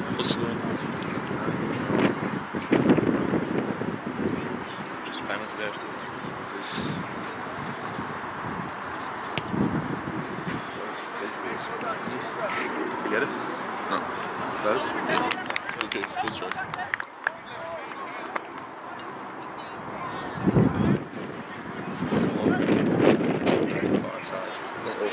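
Wind blusters across an open field outdoors.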